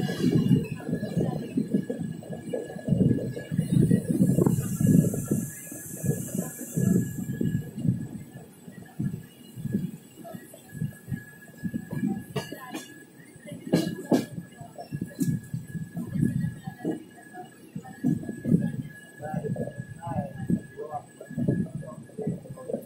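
A passenger train rumbles and clatters along over the rails.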